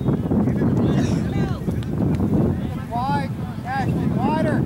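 Young players and spectators shout across an open field.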